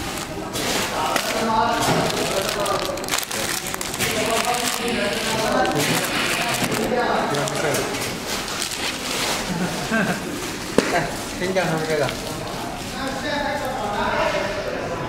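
A packaging machine runs with a steady whirring clatter.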